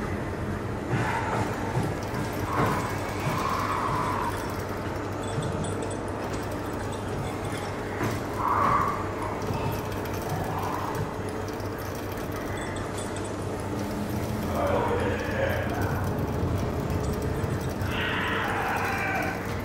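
Footsteps clang on a metal grating walkway.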